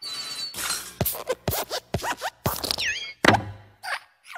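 A desk lamp hops and thumps on wooden letters.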